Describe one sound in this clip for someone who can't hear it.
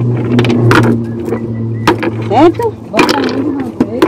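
Rocks clunk against each other as they are dropped into a plastic bucket.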